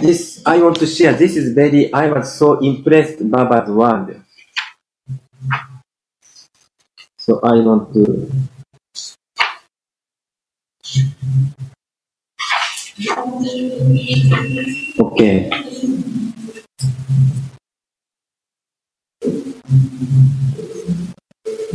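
An elderly man reads aloud calmly, heard through an online call.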